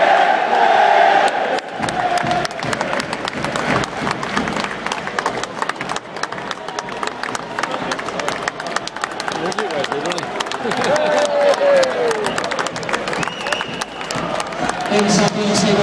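Spectators nearby clap their hands.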